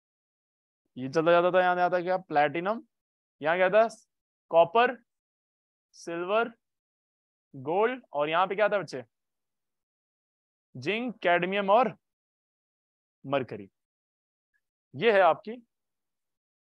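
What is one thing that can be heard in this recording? A young man speaks calmly into a microphone in short phrases with pauses.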